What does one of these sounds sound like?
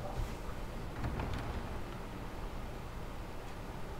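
Heavy wooden doors creak open.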